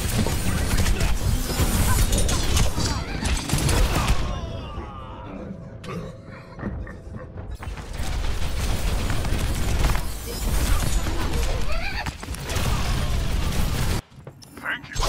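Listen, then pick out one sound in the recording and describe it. Guns fire in quick bursts with loud crackling shots.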